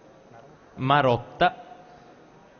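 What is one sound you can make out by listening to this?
A man speaks briefly through a microphone in a large hall.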